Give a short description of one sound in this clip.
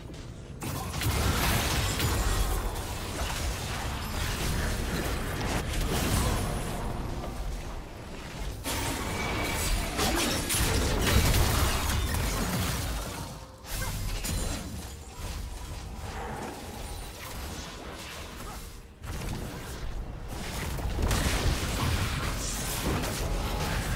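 Magic spells whoosh and crackle in a video game fight.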